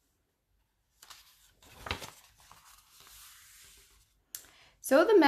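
A book page turns with a papery rustle.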